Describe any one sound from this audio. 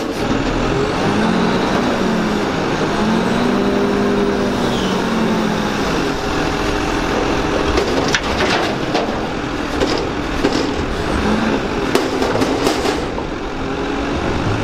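A garbage truck's engine idles and roars steadily.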